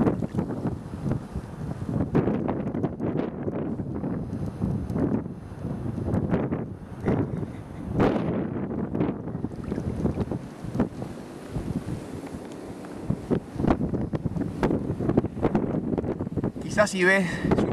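Wind blusters over open water outdoors.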